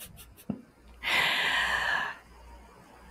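A young man laughs softly, heard through a microphone.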